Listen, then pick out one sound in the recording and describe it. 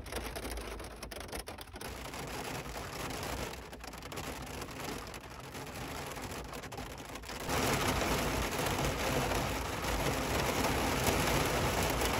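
Heavy rain patters steadily on a vehicle's windshield and roof, growing louder.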